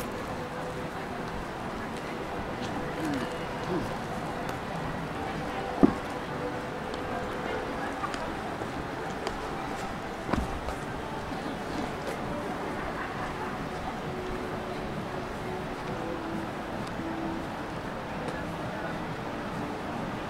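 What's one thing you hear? Distant town traffic hums steadily outdoors.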